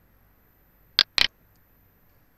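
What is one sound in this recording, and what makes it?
A mouse button clicks twice, sharply and close.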